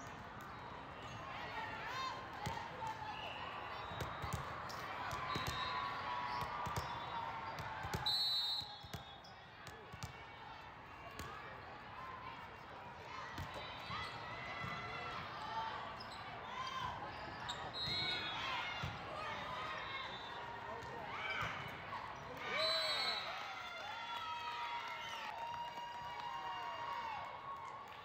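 A crowd of spectators talks and cheers in a large echoing hall.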